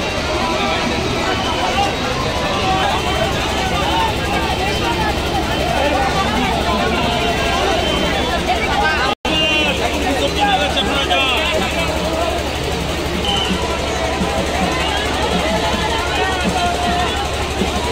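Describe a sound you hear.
A crowd of people chatters loudly all around, outdoors.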